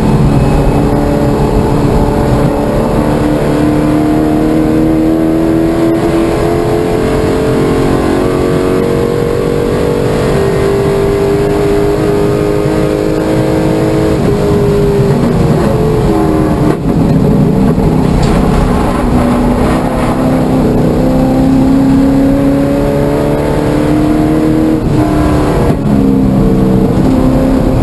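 Road noise rumbles steadily under the car.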